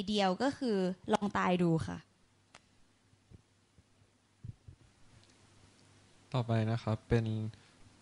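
A young woman speaks into a microphone over a loudspeaker in a room.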